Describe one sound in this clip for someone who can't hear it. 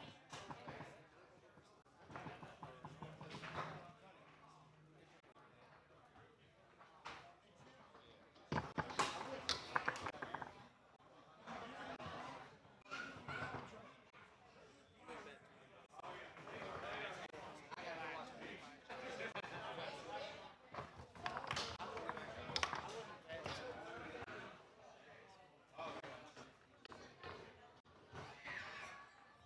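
Table football rods clack and rattle as the players spin them.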